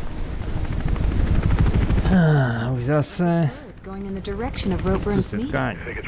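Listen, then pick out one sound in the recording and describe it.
A helicopter flies overhead with a thudding rotor.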